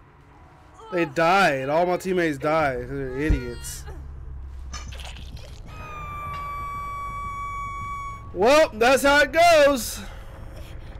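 A young woman screams in pain.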